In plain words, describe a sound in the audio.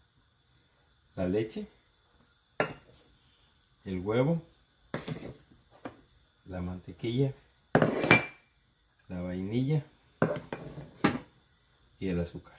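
A small cup knocks lightly on a countertop.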